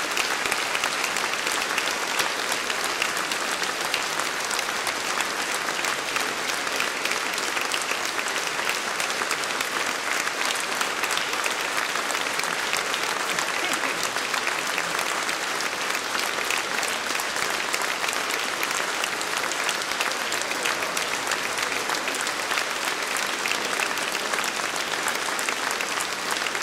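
A large men's choir sings together in a big echoing hall.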